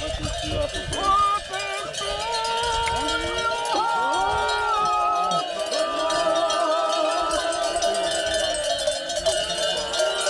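Sheep bleat close by.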